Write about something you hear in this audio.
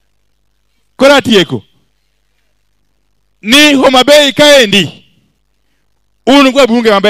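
A man speaks forcefully into a microphone over loudspeakers, in short bursts with pauses.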